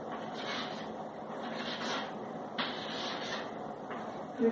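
Chalk scratches on a board.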